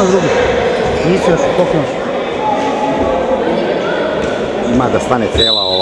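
A crowd of young people and adults chatter and shout in a large echoing hall.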